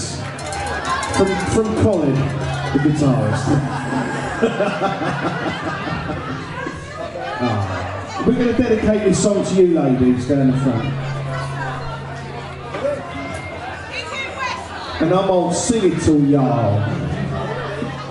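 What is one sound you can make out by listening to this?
Loud pop music with a singing voice plays through speakers in a large room.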